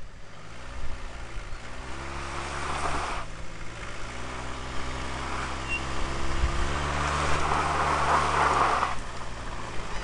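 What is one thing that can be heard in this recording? A car engine revs hard in bursts.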